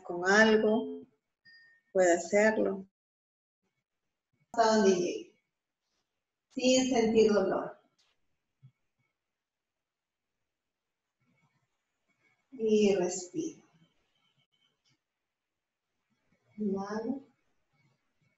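A woman speaks calmly and slowly, close by, in short phrases with long pauses.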